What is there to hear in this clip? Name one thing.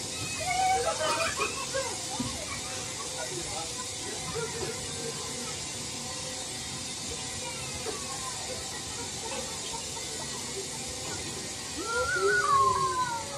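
A fairground ride whirs as it spins.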